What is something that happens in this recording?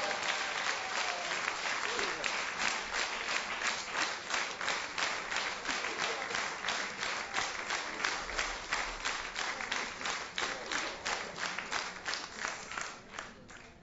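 A band plays fast, lively music in a large hall.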